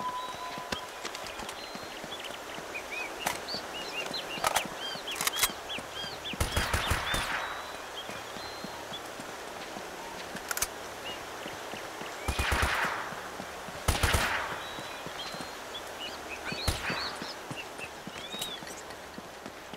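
Footsteps scuff on stone as a man runs.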